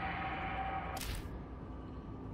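A menu clicks open with a soft whoosh.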